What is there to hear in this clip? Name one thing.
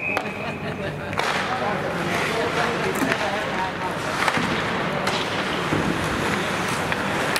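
Hockey sticks clack sharply against the puck and each other.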